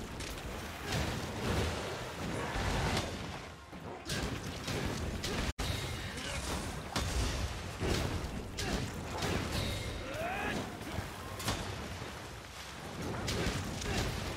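A heavy blade strikes with sharp impacts.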